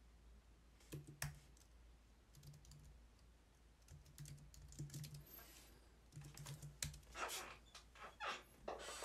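Keyboard keys click in quick bursts.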